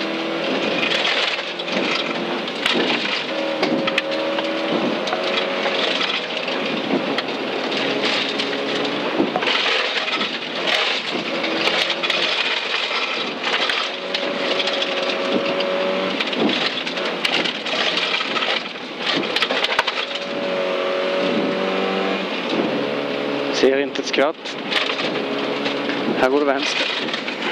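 A rally car engine roars loudly from inside the cabin, revving up and down through the gears.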